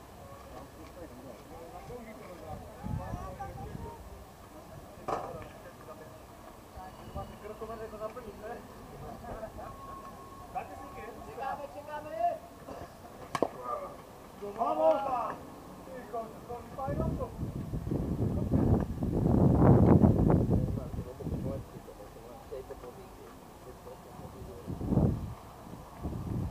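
Men talk and call out outdoors.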